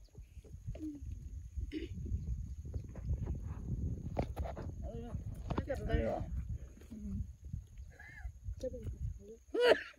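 A young woman chews food.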